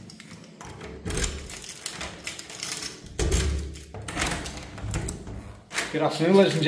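Keys jingle and a key turns in a door lock.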